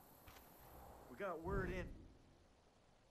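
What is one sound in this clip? A man speaks calmly, close by.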